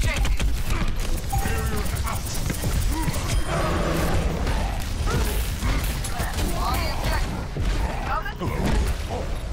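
Heavy gunfire rattles rapidly.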